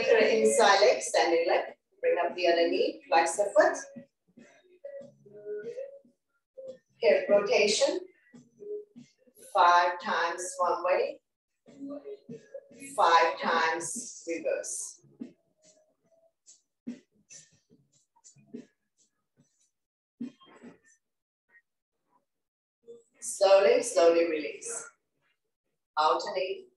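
A woman speaks calmly in bursts, heard close through a microphone.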